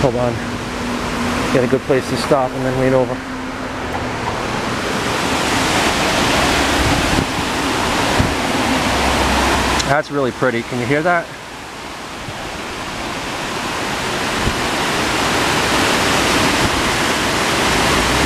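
Shallow water rushes and splashes over rocks.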